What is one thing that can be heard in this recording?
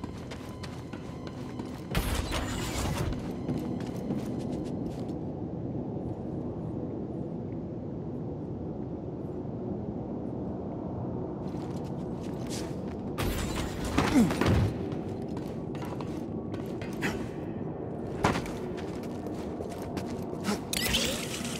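Footsteps clang quickly on a metal grating.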